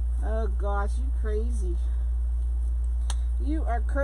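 Plastic mesh ribbon rustles softly as hands smooth it flat.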